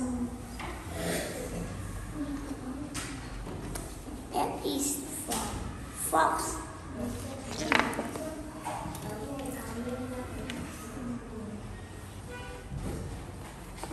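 Cardboard pages rustle and flap as they are turned.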